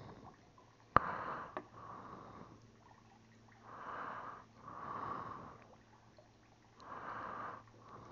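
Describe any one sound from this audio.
A small fish wriggles and flaps on a fishing line.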